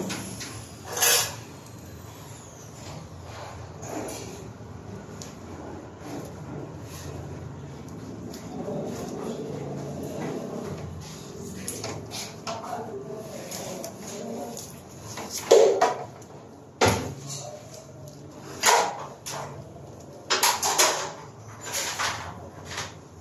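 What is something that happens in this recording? Cables rustle and rattle as they are handled.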